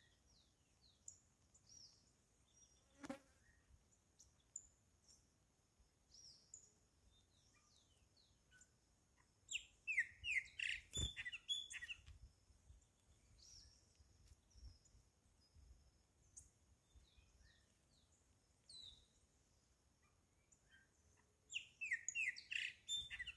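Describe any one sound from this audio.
Birds chirp and call close by, outdoors.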